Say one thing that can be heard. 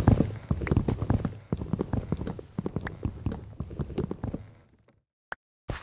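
Blocky wood is chopped with repeated knocking thuds.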